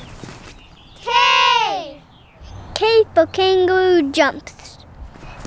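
A young boy speaks clearly and close by.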